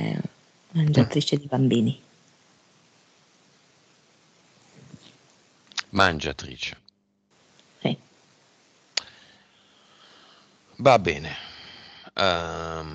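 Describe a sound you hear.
A man talks in short bursts into a headset microphone, close by.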